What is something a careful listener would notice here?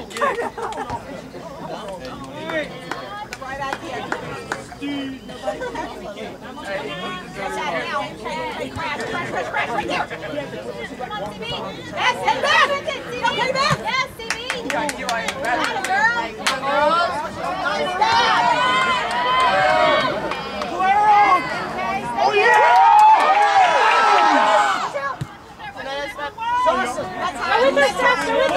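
A crowd of spectators nearby talks and cheers outdoors.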